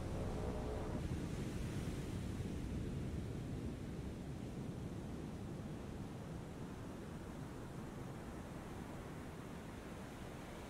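Waves wash and rush around a ship at sea.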